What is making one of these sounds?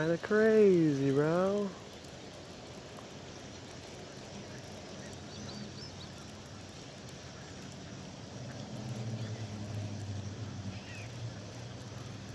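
A fishing reel clicks softly as line is wound in.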